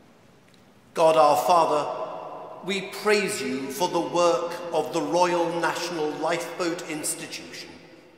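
An organ plays loudly, echoing through a vast stone hall.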